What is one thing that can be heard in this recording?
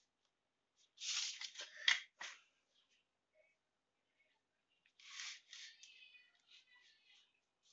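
A plastic ruler slides and knocks on paper.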